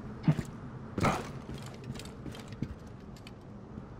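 Heavy cloth rustles and flaps open.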